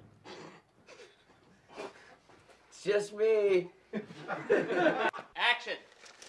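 A young man speaks excitedly up close.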